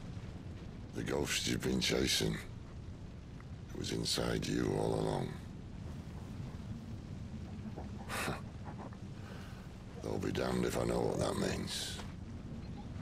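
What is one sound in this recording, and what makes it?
A man speaks in a low, calm voice, close by.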